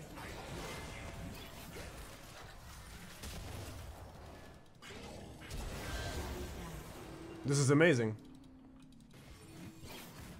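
Video game combat effects whoosh and clash.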